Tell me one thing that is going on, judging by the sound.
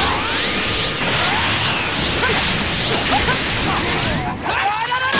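Bright whooshing and zapping effects sweep up and down in pitch.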